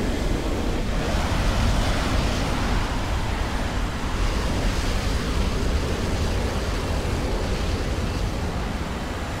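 Wind rushes loudly past a jet as it turns hard.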